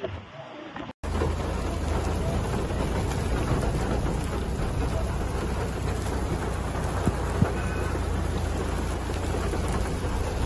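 Strong wind blows and rumbles across an open area.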